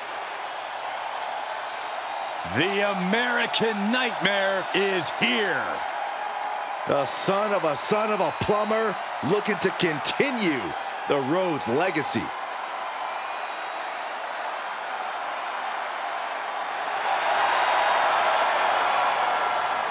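A large crowd cheers and roars in a big echoing arena, growing louder near the end.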